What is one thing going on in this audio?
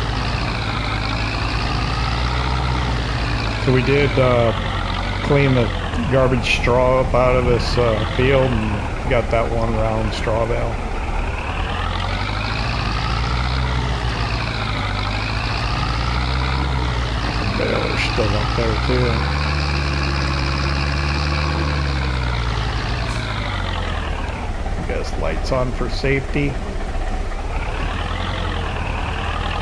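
A tractor engine hums and revs up and down.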